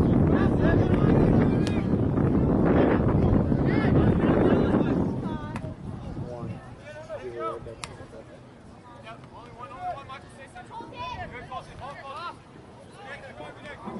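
A football thuds as players kick it on an open field.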